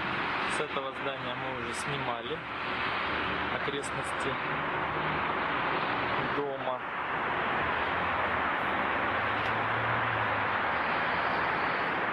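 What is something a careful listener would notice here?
Traffic hums steadily on a road far below.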